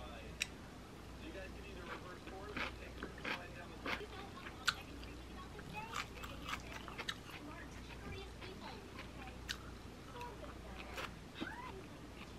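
A woman chews food softly.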